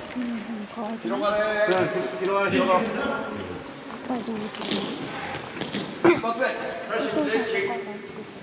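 Children call out to each other in a large echoing hall.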